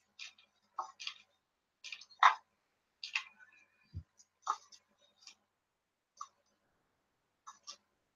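Paper crinkles and rustles in someone's hands, close by.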